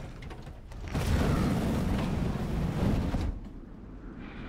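A flamethrower roars loudly.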